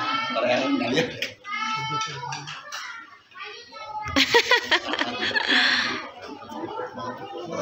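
Young children chatter and call out nearby in a room.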